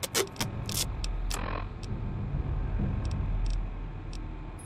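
Menu selections click and beep quickly.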